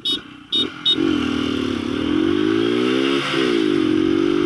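A motorcycle engine hums and revs up and down while riding close by.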